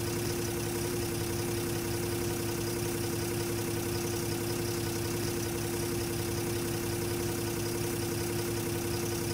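A bus engine idles steadily with a low hum.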